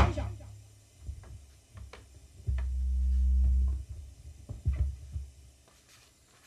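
Equipment knocks and clicks as a man handles it.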